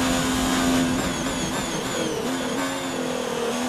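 A racing car engine drops in pitch as the car brakes and shifts down through the gears.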